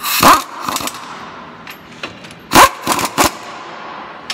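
An air hammer rattles in sharp loud bursts against metal.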